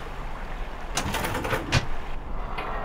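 A metal door creaks open.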